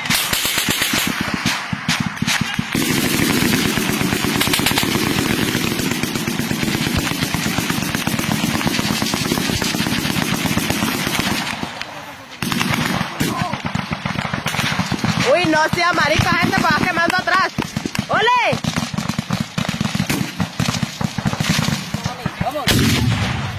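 Rapid gunfire crackles and pops nearby outdoors.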